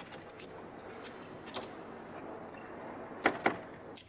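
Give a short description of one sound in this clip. A metal door swings shut with a clunk.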